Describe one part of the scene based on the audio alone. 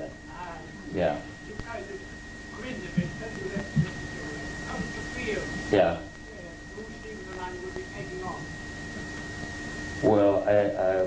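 A man speaks calmly into a microphone, heard through a loudspeaker in a hall.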